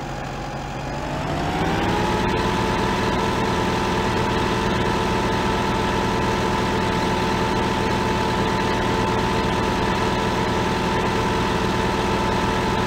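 A tractor engine revs up and drones steadily as the tractor drives.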